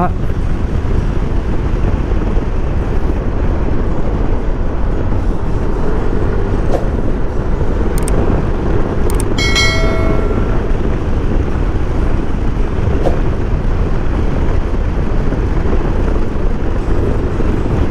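A scooter engine hums steadily.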